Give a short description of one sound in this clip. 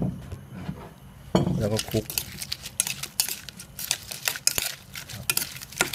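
A spoon scrapes and clinks against a metal bowl.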